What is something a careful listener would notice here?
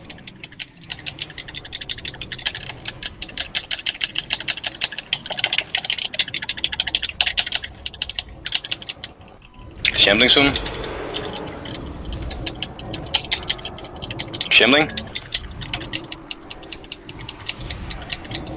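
Game spell effects crackle and clash in rapid bursts during a fight.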